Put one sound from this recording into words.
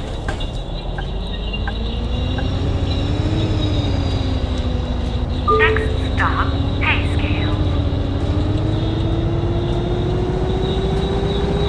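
A bus engine hums and rises in pitch as it speeds up.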